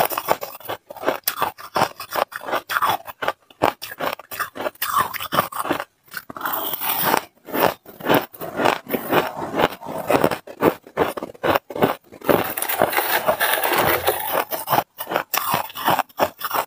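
A young woman crunches shaved ice loudly close to a microphone.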